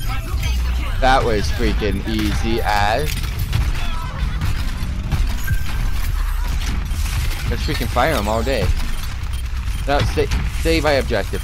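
Rapid gunfire and explosions boom in a video game.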